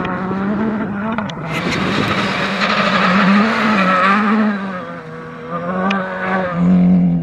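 A rally car engine roars loudly, revving up and down as the car passes close by.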